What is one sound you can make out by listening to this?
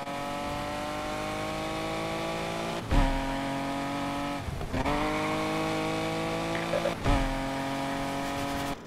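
A sports car engine revs hard, shifting up through the gears.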